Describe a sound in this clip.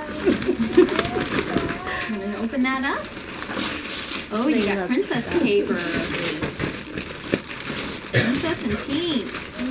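Young girls talk and chatter excitedly close by.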